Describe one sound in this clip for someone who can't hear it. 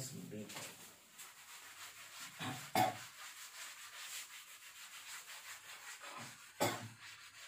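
A cloth rubs and swishes across a board.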